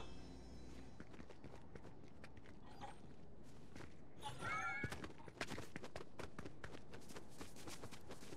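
Quick running footsteps patter over ground.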